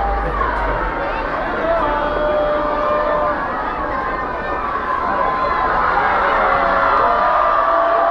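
A crowd cheers and whistles.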